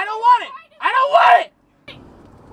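A young woman exclaims excitedly close by.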